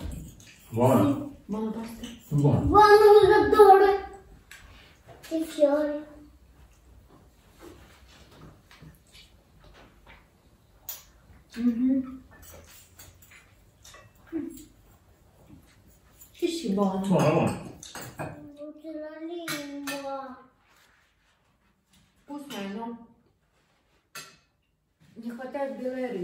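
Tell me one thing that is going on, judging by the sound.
Cutlery clinks against plates.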